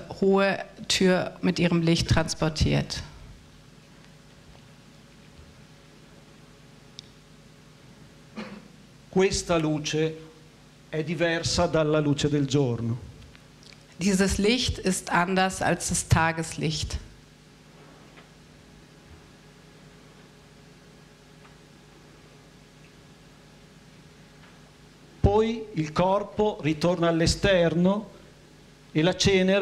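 An older man speaks calmly through a microphone in a large echoing hall, pausing between phrases.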